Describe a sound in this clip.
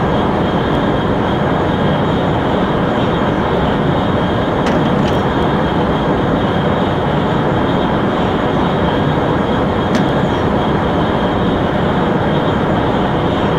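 A high-speed train roars steadily along the tracks.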